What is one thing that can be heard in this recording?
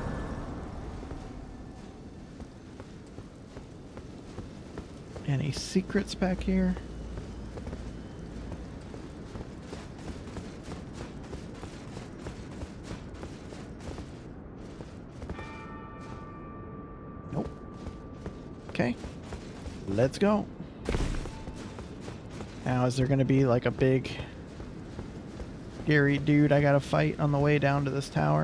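Footsteps patter quickly on stone and grass.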